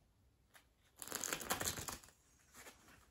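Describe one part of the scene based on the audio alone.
A deck of playing cards is shuffled with a quick riffle.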